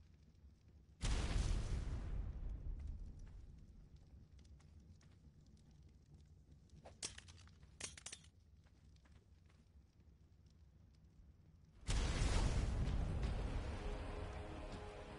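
A grenade explodes with a loud boom that rumbles and slowly fades.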